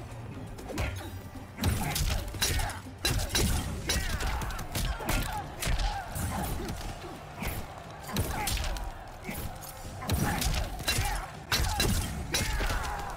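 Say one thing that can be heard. Punches and kicks land with sharp thuds and smacks.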